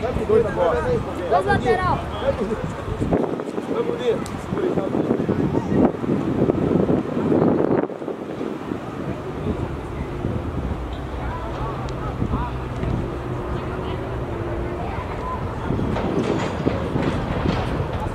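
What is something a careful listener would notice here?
Young players shout across an outdoor field.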